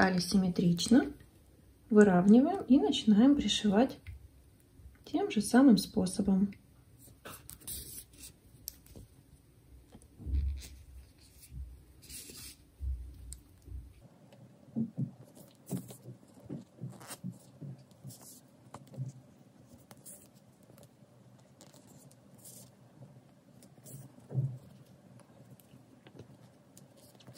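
Yarn rustles softly as it is pulled through stitches.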